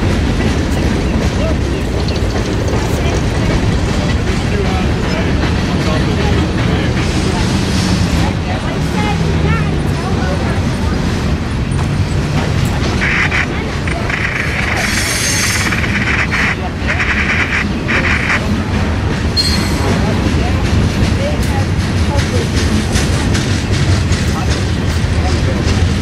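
A freight train rumbles past at a distance, its wheels clattering steadily on the rails.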